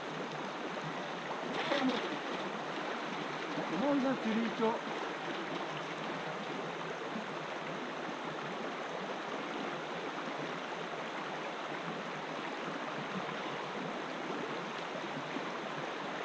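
A shallow stream rushes steadily over stones.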